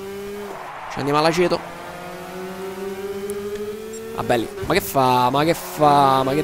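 Other kart engines whine as they pass close by.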